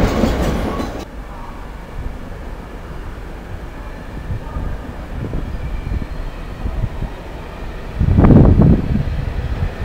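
A high-speed train approaches with a low engine hum, passing close by.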